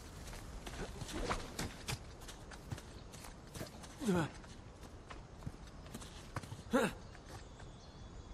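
Footsteps scuff on stone.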